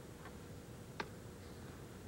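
A cue strikes a billiard ball with a single sharp click.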